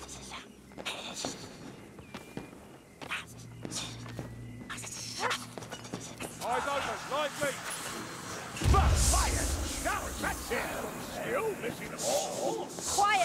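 Footsteps scuff and thud on stone.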